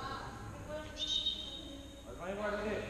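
Shoes squeak on a hard court floor in a large echoing hall.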